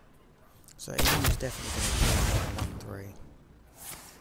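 A game spell whooshes and crashes.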